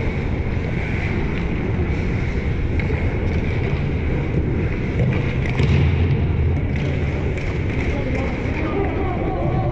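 Skates scrape lightly on ice.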